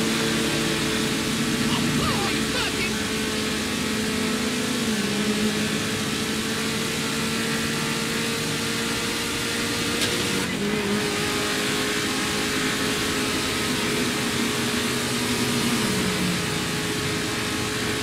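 A car engine hums steadily at speed, shifting gears now and then.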